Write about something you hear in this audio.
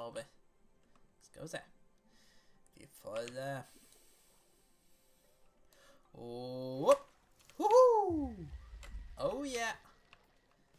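A man exclaims with animation, close to a microphone.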